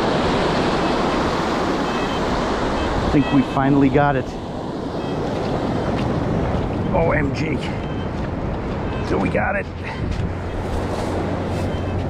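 Shallow surf washes and fizzes over sand.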